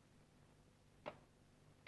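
A match is struck and flares.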